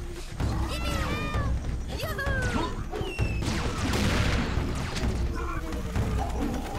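A heavy gun fires repeatedly with deep, booming blasts.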